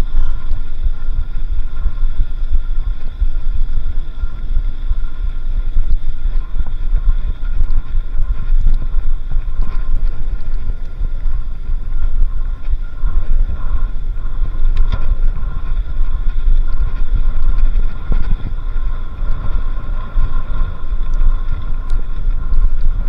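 Wind rumbles loudly over the microphone.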